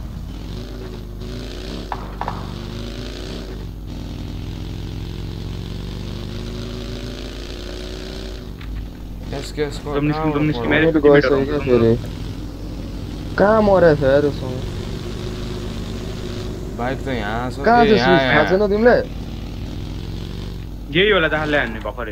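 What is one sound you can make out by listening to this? A buggy engine drones and revs as it drives over rough ground.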